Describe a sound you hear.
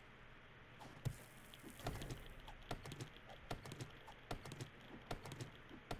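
An axe thuds into wood with a few dull blows.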